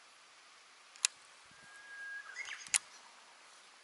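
A fishing reel clicks sharply.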